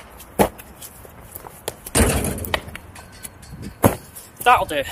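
Shoes land with thuds on grass and stone.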